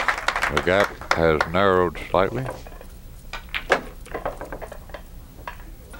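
Billiard balls clack together on a pool table.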